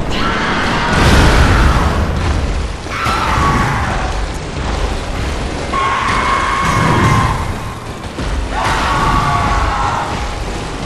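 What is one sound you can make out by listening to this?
A monstrous beast roars and snarls.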